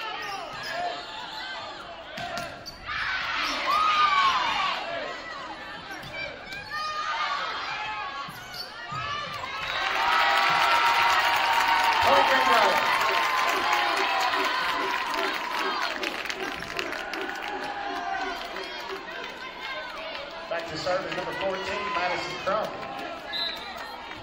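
Players' shoes squeak sharply on the court floor.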